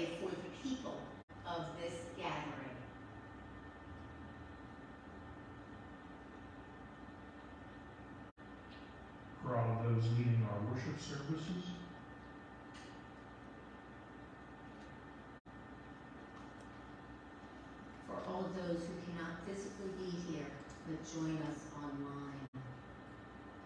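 A woman speaks slowly into a microphone, heard through loudspeakers in an echoing hall.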